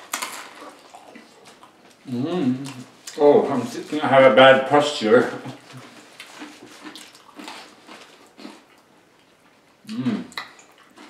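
A young man chews and smacks his lips while eating.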